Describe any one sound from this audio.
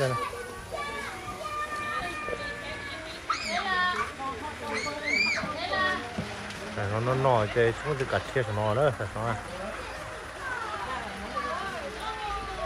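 Several women chat nearby outdoors.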